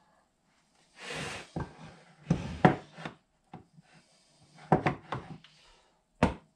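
Pieces of wood knock and clatter as they are handled.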